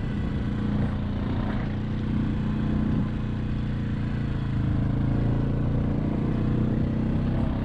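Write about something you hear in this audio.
A quad bike engine drones steadily up close as it drives along.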